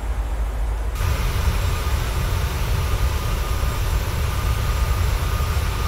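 Jet engines roar steadily outside an airliner in flight.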